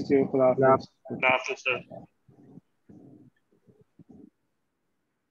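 A man speaks calmly into a microphone, heard over an online call.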